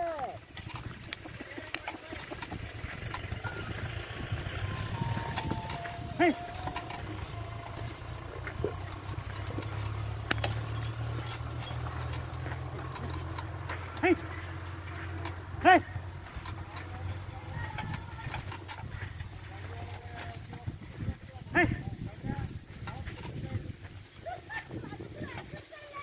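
A seed drill's wheels rumble and rattle over rough soil.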